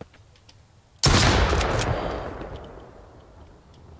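A shotgun fires a single loud blast that echoes and slowly fades.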